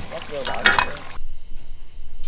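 Hot oil sizzles and bubbles.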